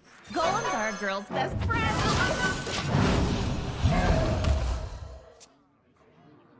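A magical chime and whoosh ring out as a game card is played.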